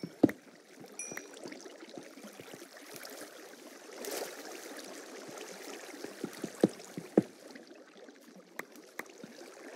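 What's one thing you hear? Water flows and splashes steadily.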